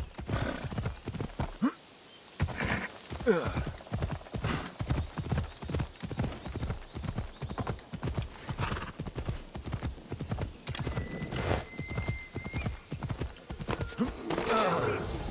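Horse hooves gallop steadily over the ground.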